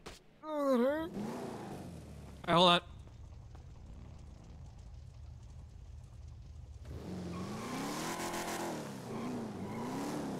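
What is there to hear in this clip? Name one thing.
A car engine idles and revs.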